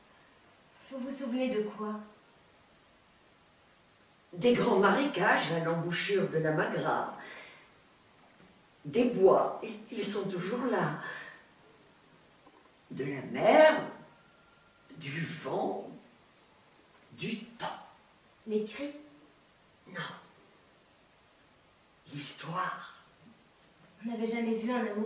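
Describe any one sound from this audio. An elderly woman speaks expressively, close by, with pauses.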